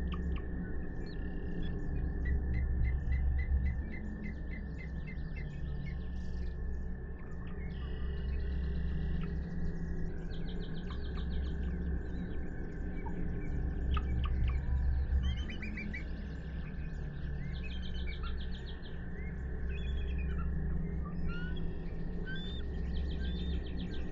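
Rhythmic game music plays with a low beat.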